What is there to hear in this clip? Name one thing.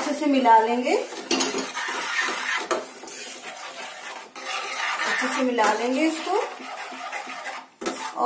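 A metal spoon scrapes and clinks in a pan.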